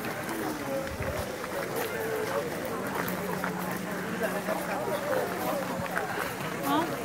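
A crowd of men, women and children chatter nearby outdoors.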